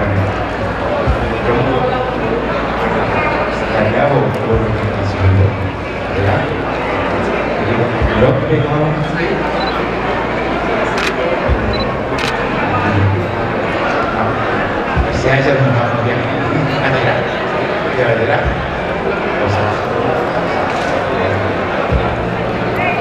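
A middle-aged man speaks with animation into a microphone through loudspeakers in a large echoing hall.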